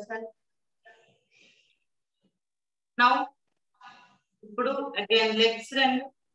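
A woman speaks calmly and clearly, close to the microphone.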